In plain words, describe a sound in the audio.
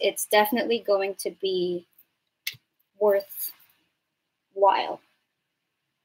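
A young woman speaks calmly and closely into a microphone.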